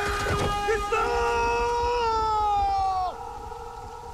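A man shouts loudly.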